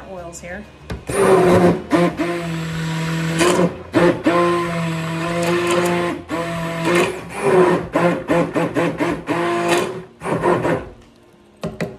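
A stick blender whirs loudly in liquid.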